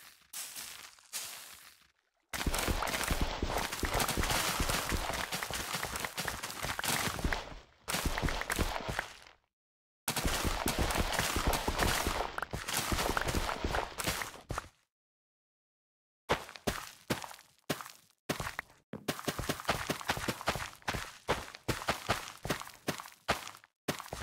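Crops rustle and snap in quick bursts as they are harvested in a video game.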